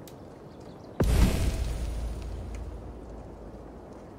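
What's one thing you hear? A deep game menu sound booms once and slowly fades.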